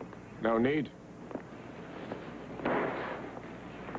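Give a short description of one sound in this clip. Footsteps walk across a wooden floor.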